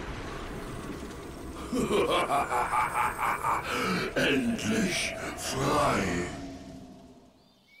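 A magical burst of energy whooshes and crackles.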